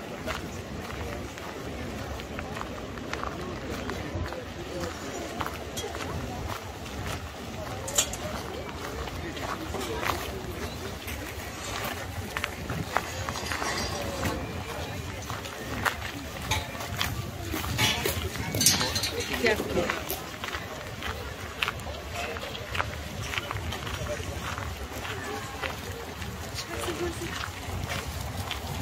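A crowd of men and women chatter in the distance outdoors.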